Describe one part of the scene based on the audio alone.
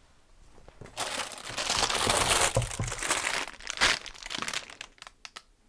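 Items rustle and clatter as a man rummages on a shelf.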